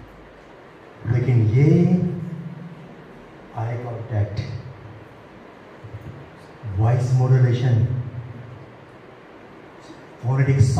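A man speaks with animation through a microphone and loudspeakers in an echoing room, pausing between phrases.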